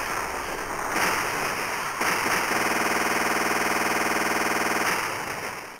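Explosions boom and crackle in a game.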